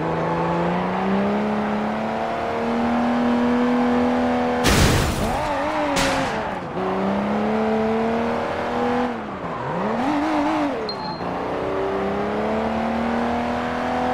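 A car engine revs and shifts gears as it speeds along.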